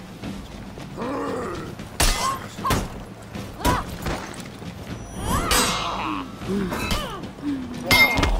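Warriors grunt and shout with effort as they fight.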